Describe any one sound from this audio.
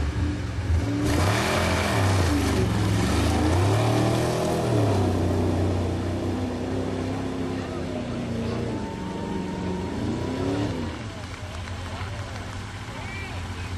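Mud sprays and splatters under spinning tyres.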